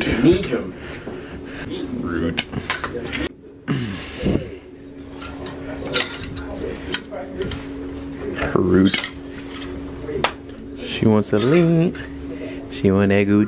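Plastic hangers click and scrape along a metal rail.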